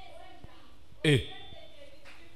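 A computer display gives a short electronic swoosh.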